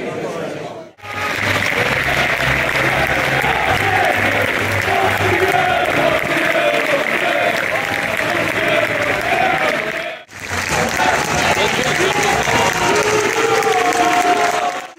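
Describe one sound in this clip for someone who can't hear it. A large crowd sings and chants outdoors in a stadium.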